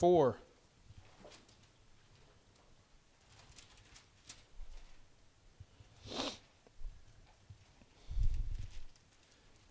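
Book pages rustle as a man turns them.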